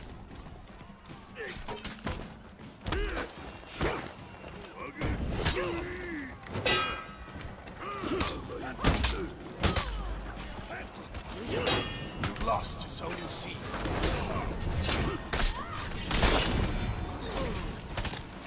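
Swords clash and strike armour in quick, sharp hits.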